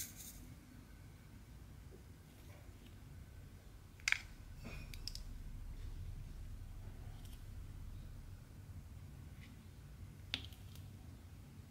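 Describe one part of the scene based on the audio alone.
A pen tool taps softly on small plastic beads.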